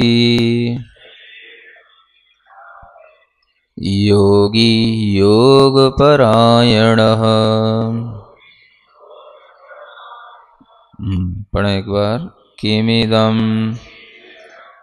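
A man chants in a slow, sustained melodic voice, with pauses between phrases.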